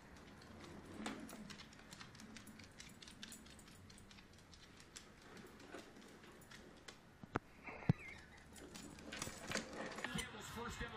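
Leashes rattle and jingle.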